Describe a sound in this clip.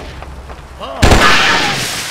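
An energy blast bursts with a loud whoosh and slowly fades.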